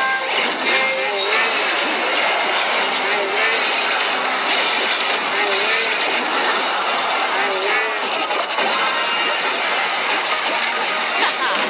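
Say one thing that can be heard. Video game battle effects clash and crackle.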